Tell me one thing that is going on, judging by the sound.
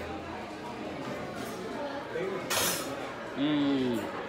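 A man hums with pleasure while eating.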